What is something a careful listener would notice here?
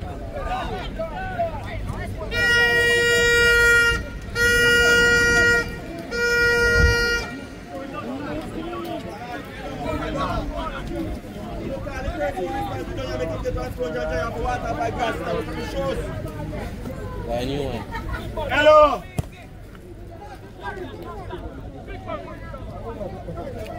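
Young men shout and call to each other outdoors on an open field.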